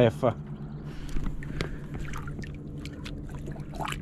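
A fish splashes as it drops into shallow water.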